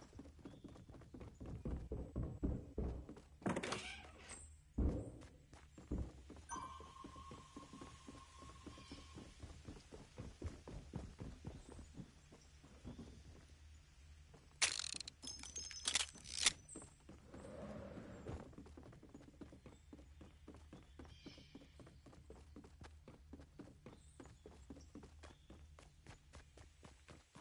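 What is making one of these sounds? Quick footsteps patter across wooden boards.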